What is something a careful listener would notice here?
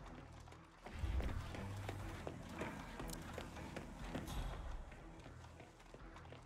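Footsteps tap on hard stairs.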